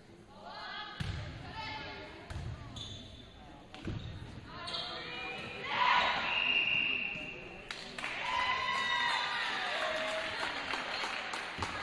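A volleyball thuds off players' arms and hands.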